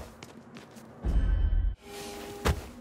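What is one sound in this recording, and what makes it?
A character lands with a heavy thud.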